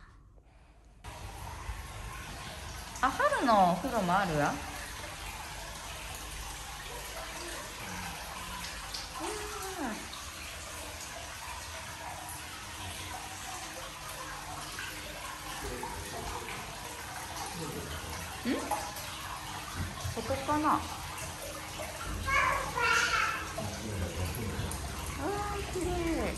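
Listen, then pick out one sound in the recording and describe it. Hot water trickles steadily into a bath.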